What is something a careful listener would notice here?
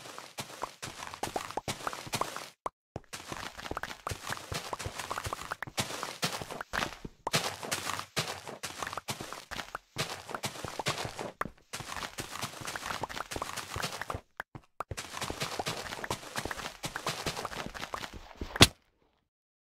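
A shovel digs rapidly through loose dirt with quick crunching scrapes.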